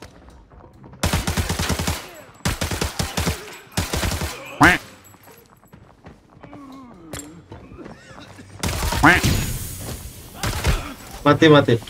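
Rapid gunshots burst out in quick volleys.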